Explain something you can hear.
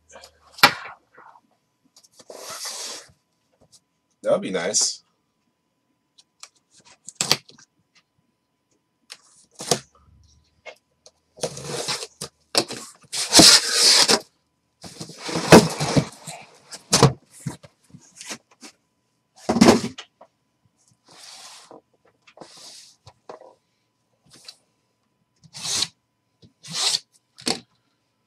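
Cardboard scrapes and rustles as a box is handled close by.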